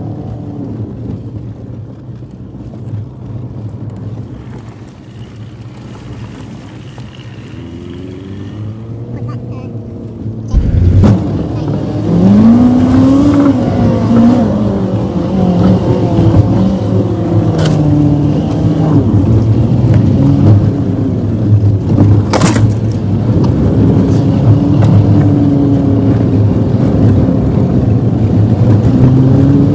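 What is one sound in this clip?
A vehicle engine rumbles and revs, growing louder as it climbs.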